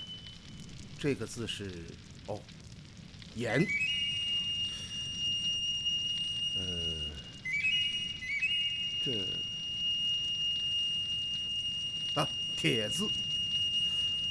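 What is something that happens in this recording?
A middle-aged man speaks slowly and in a low voice.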